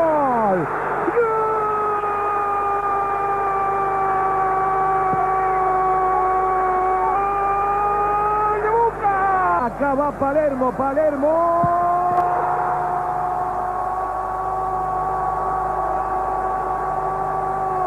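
A large stadium crowd sings and chants.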